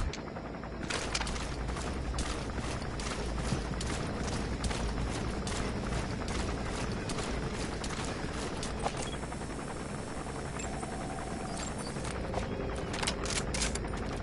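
A helicopter's rotor thumps and drones steadily.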